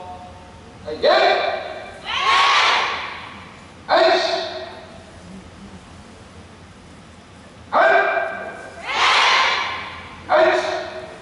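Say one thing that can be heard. A large group of young people shout together in loud bursts, echoing through a big hall.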